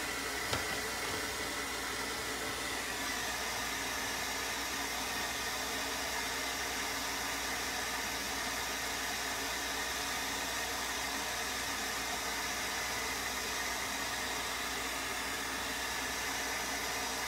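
A heat gun blows with a steady loud whir close by.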